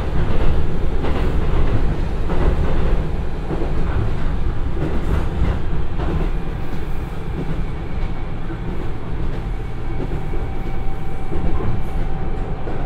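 A diesel train engine rumbles steadily up close.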